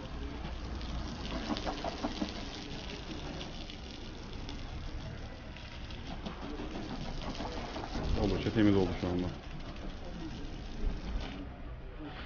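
Water sprays from a hose nozzle and splashes onto a car windshield.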